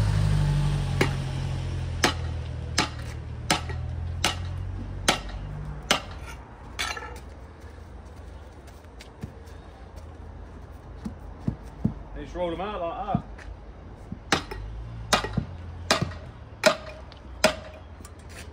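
A metal bar strikes and scrapes at broken paving in sharp knocks.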